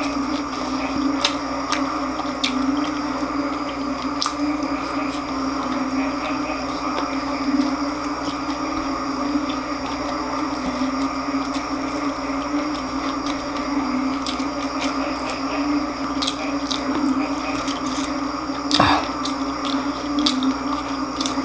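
Crispy fried food crackles as it is broken apart by hand.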